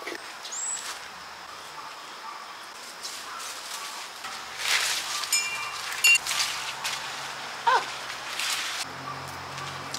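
Leafy plant stems rustle as they are handled.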